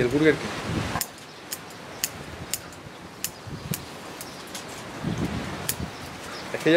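Scissors snip twigs.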